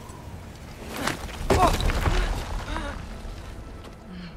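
Loose rock crumbles and rattles down a cliff face.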